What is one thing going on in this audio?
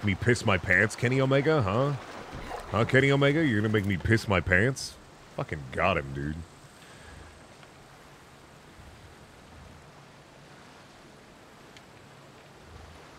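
Water sloshes against a wooden boat's hull.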